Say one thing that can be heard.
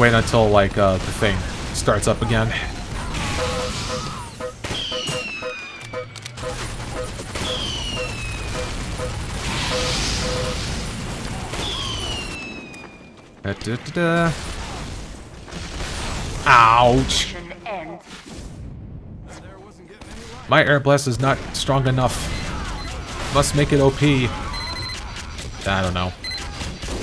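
Game gunshots and explosions bang.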